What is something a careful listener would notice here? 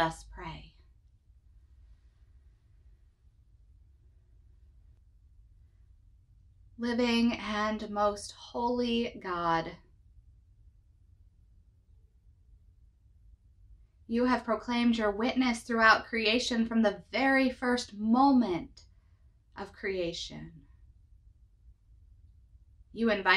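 A young woman speaks calmly and warmly, close to the microphone, with pauses.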